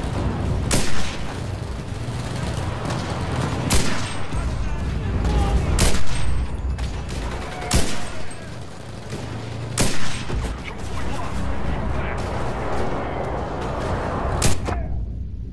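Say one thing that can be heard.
Rifle shots ring out sharply, one at a time.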